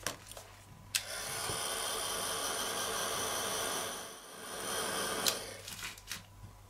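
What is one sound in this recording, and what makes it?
A heat tool blows with a steady whirring rush.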